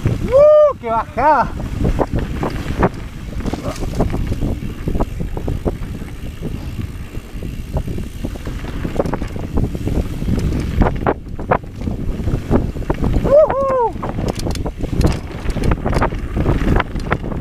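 Bicycle tyres roll and crunch over a rough dirt trail.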